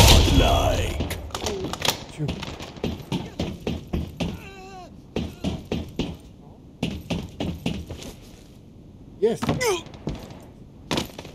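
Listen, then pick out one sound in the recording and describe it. Footsteps clank on metal.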